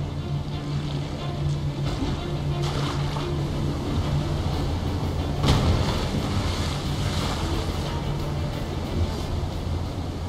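A waterfall thunders down close by.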